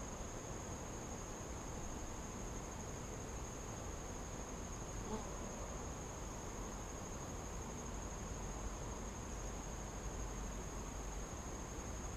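Bees buzz steadily around a hive.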